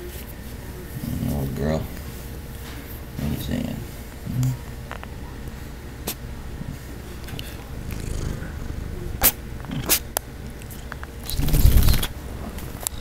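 Fur rubs and bumps against the microphone.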